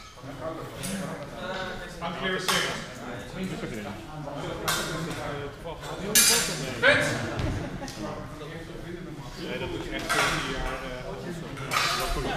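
A man speaks calmly and clearly nearby in a large echoing hall.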